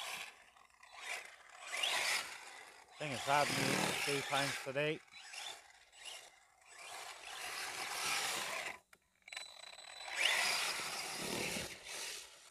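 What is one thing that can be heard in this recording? Tyres rip across grass.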